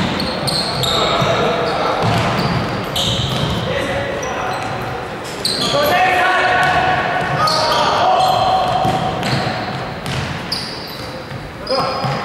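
A ball thumps as it is kicked and bounces.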